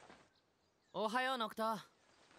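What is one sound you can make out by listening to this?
A young man speaks softly.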